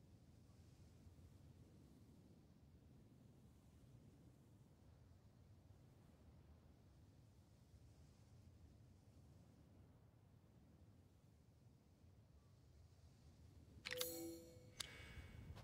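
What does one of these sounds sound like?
Wind rumbles low and steady outdoors.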